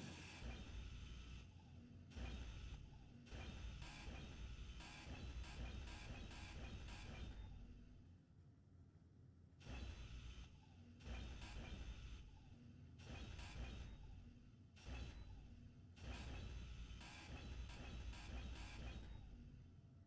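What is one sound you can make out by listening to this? A power grinder whirs in short bursts.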